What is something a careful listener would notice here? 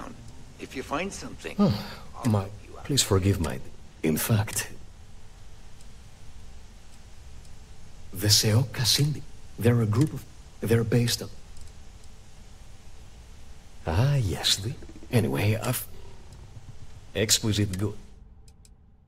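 A man speaks calmly in a smooth, clear voice.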